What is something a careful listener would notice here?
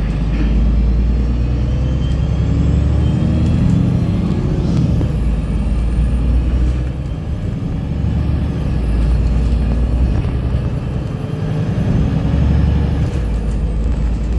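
Tyres roll on a road with a steady hiss.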